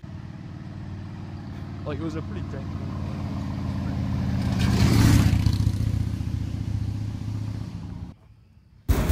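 A cruiser motorcycle rumbles past.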